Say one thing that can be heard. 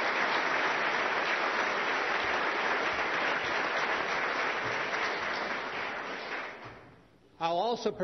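An audience applauds in a large hall, then fades.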